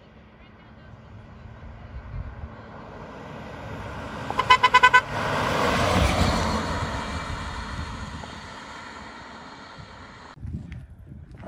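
A car engine approaches, rushes past close by and fades into the distance.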